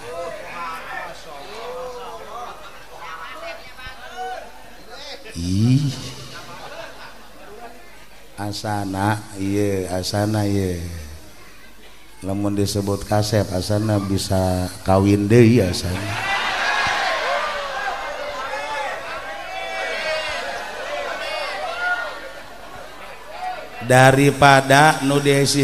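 An elderly man speaks with animation through a microphone and loudspeakers.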